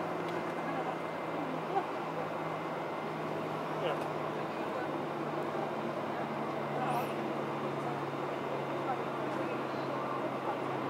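A motorcade of SUVs and vans drives slowly past on asphalt.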